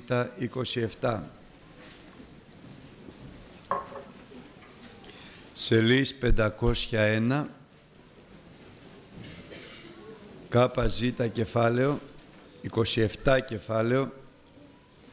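A man speaks with feeling through a microphone and loudspeakers in a large echoing hall.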